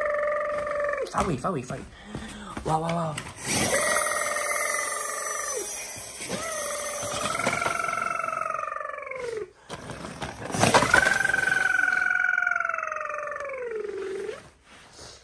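A toy siren wails with a warbling electronic tone.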